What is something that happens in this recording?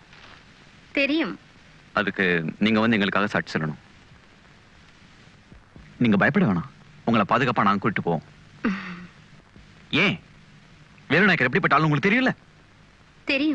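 A woman speaks quietly.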